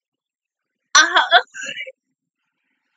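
A young woman exclaims excitedly into a headset microphone.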